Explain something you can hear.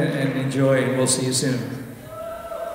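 A man sings a long held note through loudspeakers in a large echoing hall, then stops.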